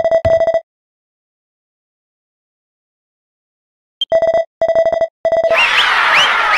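Rapid electronic blips beep in quick bursts.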